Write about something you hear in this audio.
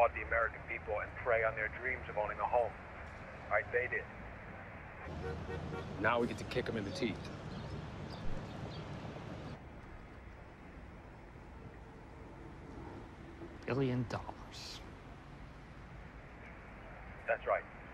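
A young man comments into a microphone.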